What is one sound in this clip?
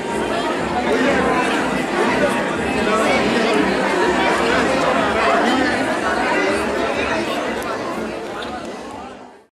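A crowd of people chatter and talk over one another nearby.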